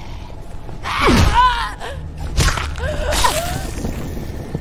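A creature screams in pain.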